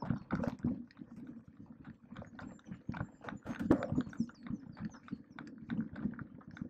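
A bicycle's frame and chain rattle over the bumps.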